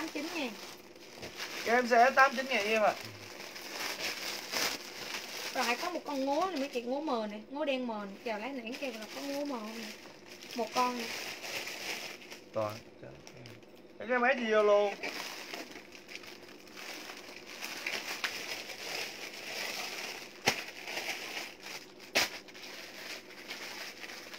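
Plastic wrapping crinkles as a young woman handles clothes.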